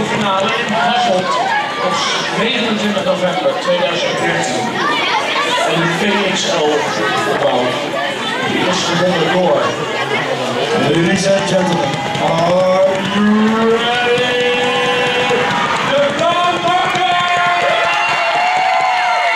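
A man speaks into a microphone with animation over a loudspeaker in an echoing hall.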